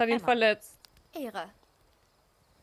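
A second woman answers calmly.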